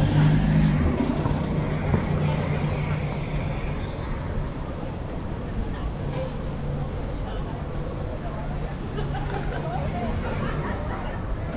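A van engine idles nearby.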